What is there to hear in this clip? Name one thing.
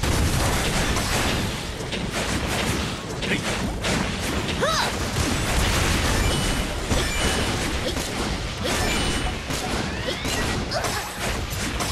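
Game weapons fire in rapid bursts.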